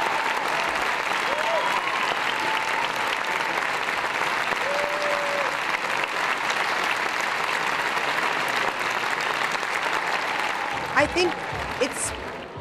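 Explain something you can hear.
A large audience applauds loudly and steadily in a big hall.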